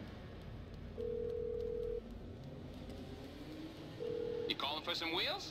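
A phone ringback tone sounds twice through a handset.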